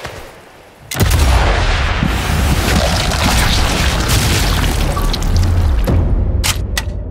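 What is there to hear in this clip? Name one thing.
A submachine gun fires loud bursts of shots.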